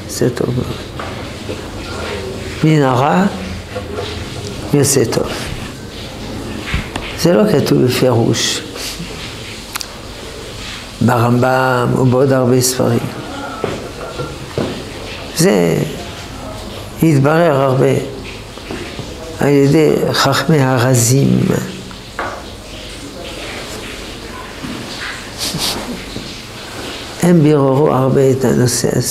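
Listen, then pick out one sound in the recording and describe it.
An elderly man speaks calmly and expressively, close by, in bursts with pauses.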